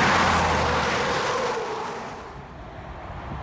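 A large truck roars past close by and fades away.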